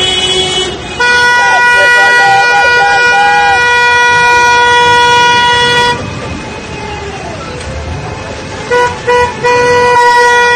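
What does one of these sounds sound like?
A car horn blares long and loud, stopping and starting again.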